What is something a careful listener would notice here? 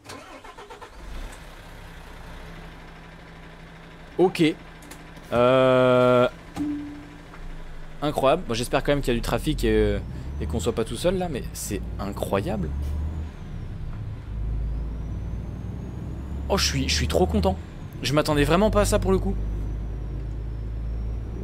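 A truck engine hums low and steady.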